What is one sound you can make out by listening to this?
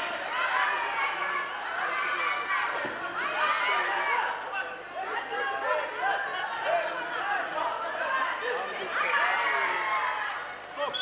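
A large crowd shouts and cheers loudly in an echoing hall.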